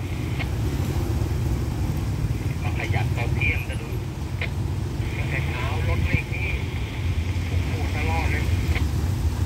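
A motorbike engine idles.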